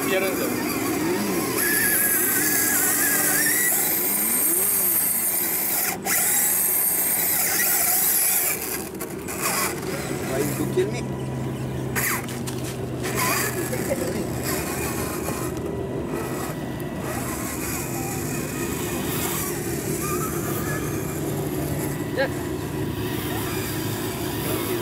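A small electric motor whines steadily.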